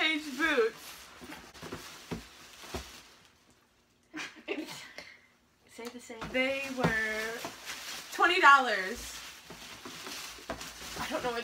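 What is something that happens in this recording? A plastic bag rustles and crinkles.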